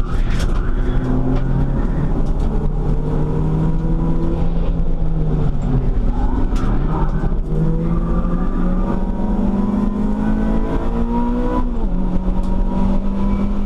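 A car engine roars loudly from inside the cabin, rising and falling in pitch as gears shift.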